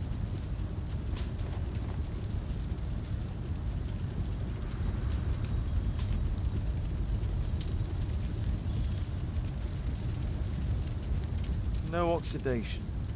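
A fire crackles softly in a furnace.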